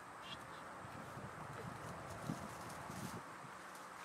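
Dry leaves rustle as a dog moves through them.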